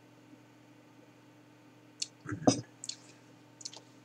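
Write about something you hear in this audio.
A glass is set down on a wooden table with a light knock.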